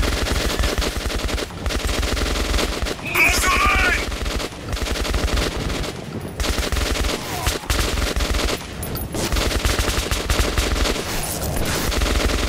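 An automatic rifle fires rapid bursts of loud shots.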